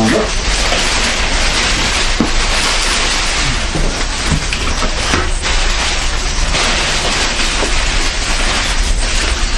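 Plastic wrapping rustles and crinkles as it is handled.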